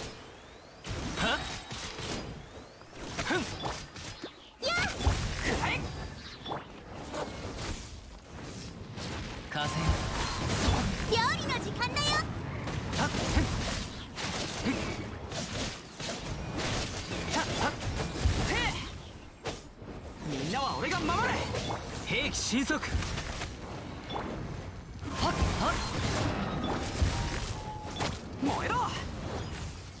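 Game sword slashes and magic blasts hit in quick bursts.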